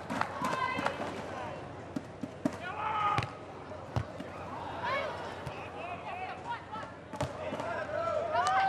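A large crowd cheers and murmurs in a big open arena.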